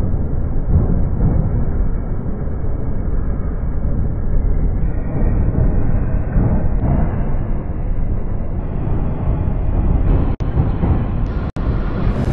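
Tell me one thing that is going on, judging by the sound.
A train rumbles steadily over a steel bridge.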